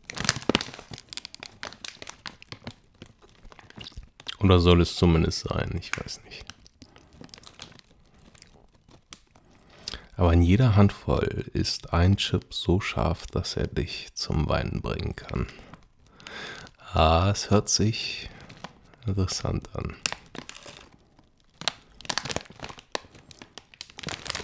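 A plastic snack bag crinkles and rustles in a hand.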